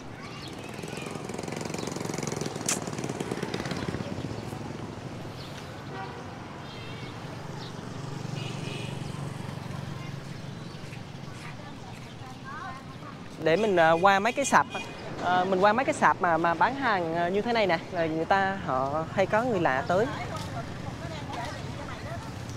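A motorbike engine hums as it rides past.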